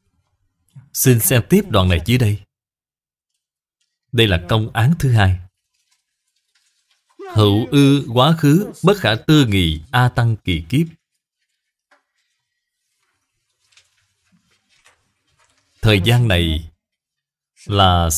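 An elderly man speaks calmly and slowly, close to a microphone, with long pauses.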